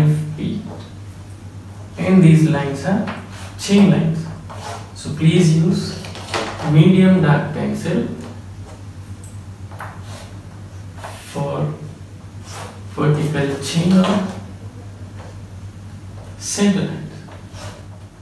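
A man speaks calmly into a microphone, pausing often.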